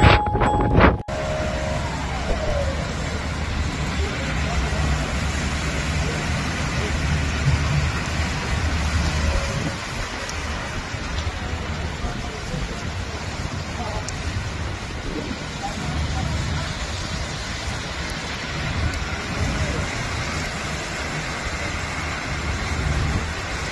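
Cars splash through flood water on a street.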